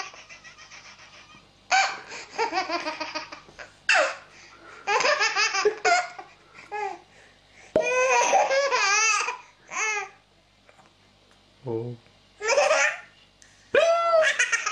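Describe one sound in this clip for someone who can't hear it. A baby laughs loudly in bursts of giggles close by.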